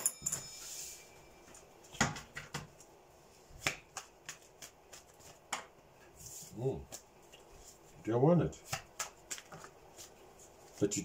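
Cards click and tap as they are shuffled.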